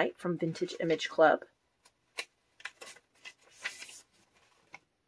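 Paper pages rustle softly as they are turned.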